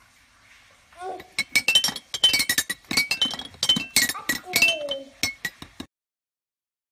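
A mallet strikes the bars of a toy xylophone, ringing out bright notes one after another.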